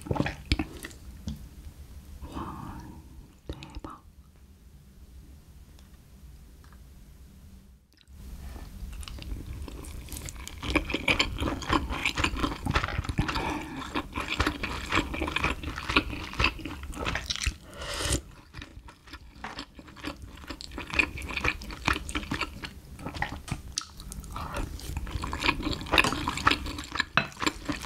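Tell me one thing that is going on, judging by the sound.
A young woman hums in delight with her mouth full.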